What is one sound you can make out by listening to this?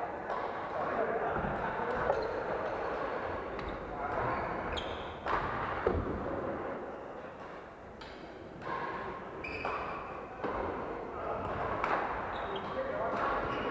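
Voices of several players echo in a large hall.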